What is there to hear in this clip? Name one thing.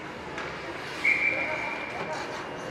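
A referee's whistle blows one long shrill blast.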